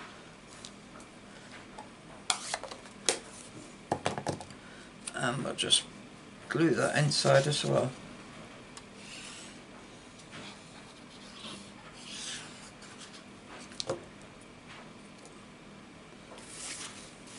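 Paper cards rustle and tap against a tabletop.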